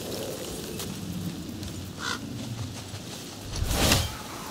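Footsteps tread over soft ground.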